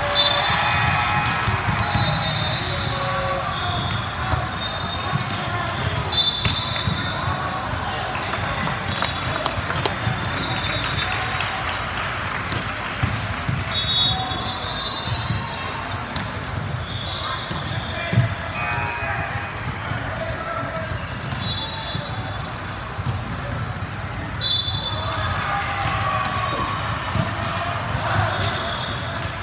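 Many voices chatter and call out, echoing through a large hall.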